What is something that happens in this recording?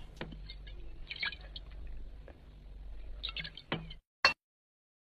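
An elderly man gulps from a bottle.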